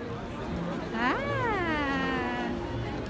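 A little girl squeals loudly nearby.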